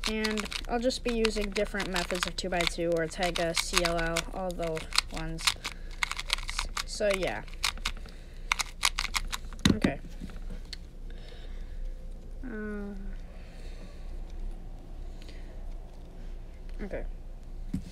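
A small plastic puzzle cube clicks and clacks as it is twisted quickly by hand.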